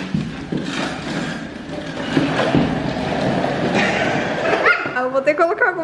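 Plastic wheels of a toy cart rattle and roll over a wooden floor.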